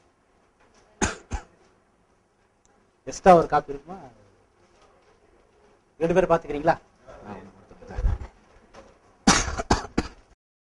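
A middle-aged man speaks nearby in short bursts.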